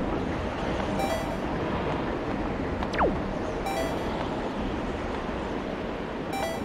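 Soft magical chimes twinkle now and then.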